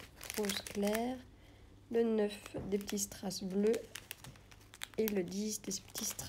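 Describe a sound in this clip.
A plastic zip bag of rhinestones crinkles as fingers handle it.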